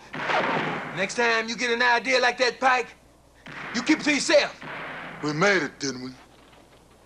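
A man speaks in a low, tense voice close by.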